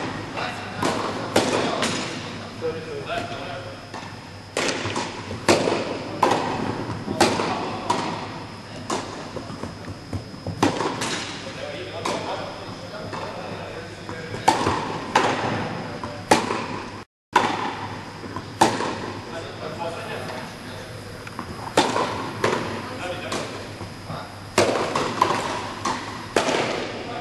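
Sneakers squeak and scuff on the court.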